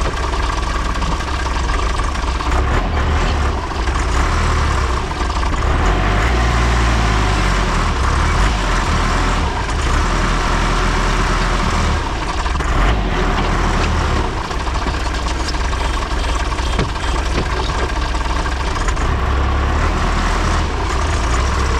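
A tractor engine rumbles loudly and steadily up close.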